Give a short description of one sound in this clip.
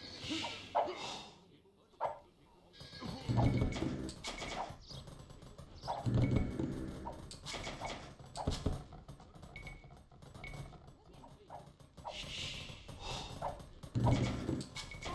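Swords clash and clang in a battle.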